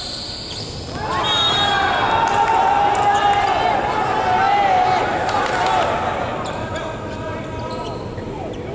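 Young men shout and cheer together in a large echoing hall.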